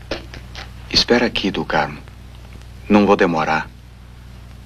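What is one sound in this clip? A man speaks sharply up close.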